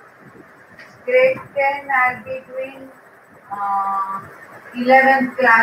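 A woman speaks clearly in a calm, teaching manner.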